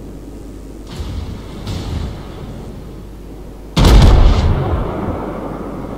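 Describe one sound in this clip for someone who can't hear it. Heavy naval guns fire with deep, loud booms.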